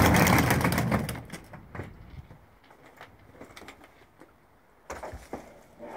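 Suitcase wheels rattle over paving stones.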